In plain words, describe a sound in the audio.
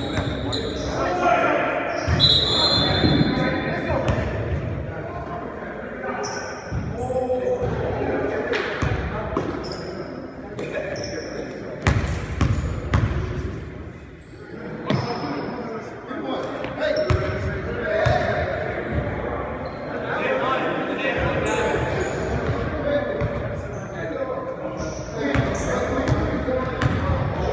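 Men talk and call out across an echoing gym.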